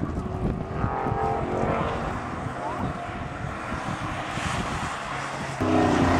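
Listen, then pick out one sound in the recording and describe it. A car drives up a road and passes by.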